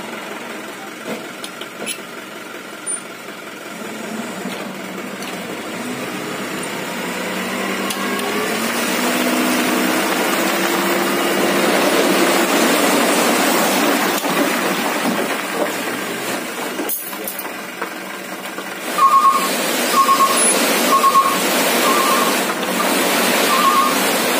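A truck engine idles and then whines as the tipper bed rises.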